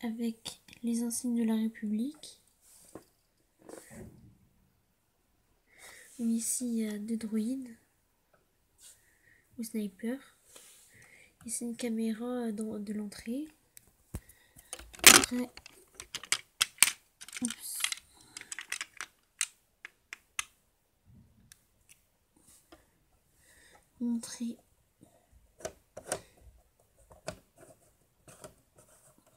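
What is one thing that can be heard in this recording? Plastic toy pieces click and clatter as they are handled.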